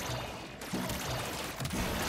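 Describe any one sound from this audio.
Game weapons fire in rapid crackling bursts.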